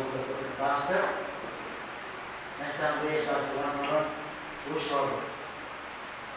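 A man speaks in short phrases into a microphone in an echoing hall.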